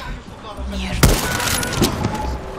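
A rifle shot rings out.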